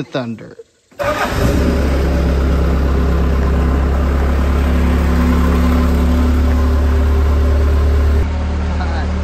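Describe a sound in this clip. A loader's engine starts and runs with a steady, loud rumble.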